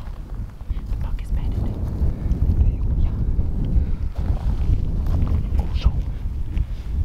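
Wind buffets the microphone outdoors in open country.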